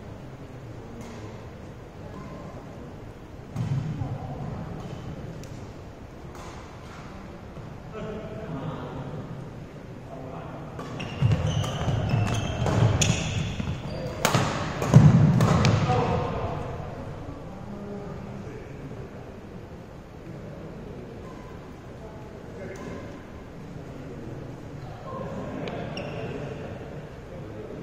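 Shuttlecocks are struck with sharp taps of rackets in a large echoing hall.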